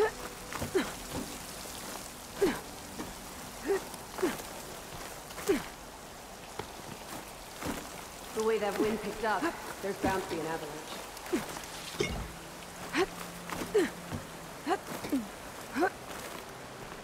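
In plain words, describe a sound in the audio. Hands grab and scrape on icy rock in quick knocks.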